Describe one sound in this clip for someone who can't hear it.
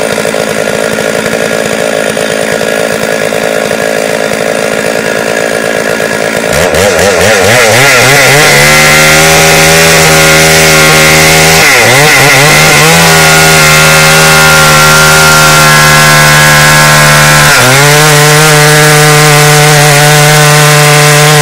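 A chainsaw engine runs close by, then revs up to a loud, steady roar with brief dips in pitch.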